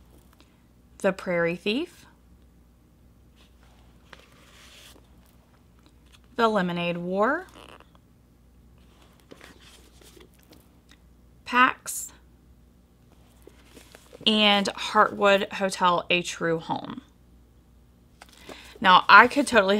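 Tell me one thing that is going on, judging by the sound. A woman speaks calmly and closely, as if into a microphone, in short bursts with pauses.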